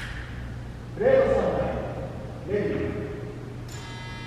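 A man talks briefly in a large echoing hall.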